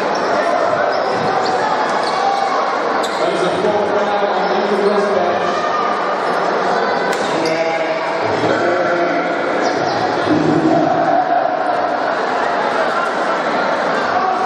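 Basketball shoes squeak sharply on a wooden floor.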